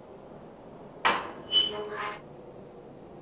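A mesh gate rattles open.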